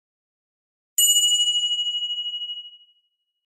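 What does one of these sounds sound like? A bell chimes brightly and rings out slowly.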